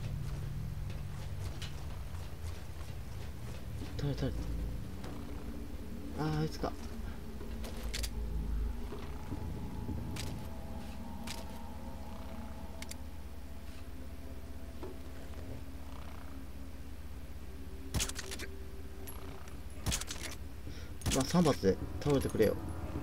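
Footsteps clang on metal stairs and a metal walkway.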